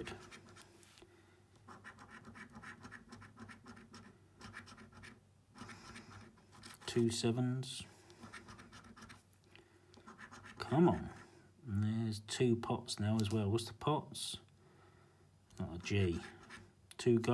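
A coin scratches and scrapes across a card.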